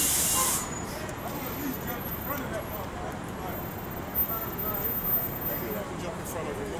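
City street noise hums steadily in the background.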